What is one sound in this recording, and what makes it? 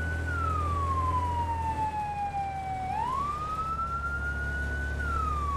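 A fire truck siren wails, rising and falling slowly.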